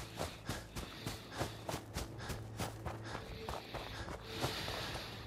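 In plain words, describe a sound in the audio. Footsteps crunch steadily on dry, rocky ground.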